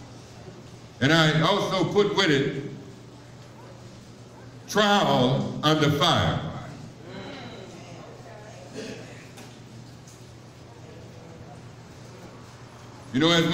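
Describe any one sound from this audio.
A man speaks loudly through a microphone in short bursts, heard in a room with some echo.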